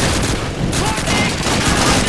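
A shell explodes with a heavy boom.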